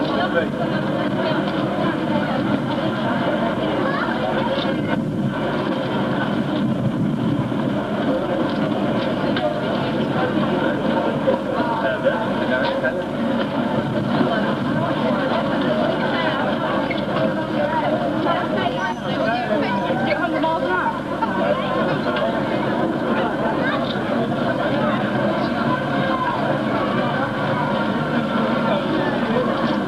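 A crowd of tourists chatters outdoors.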